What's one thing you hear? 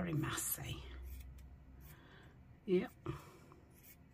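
Scissors snip through thin fabric.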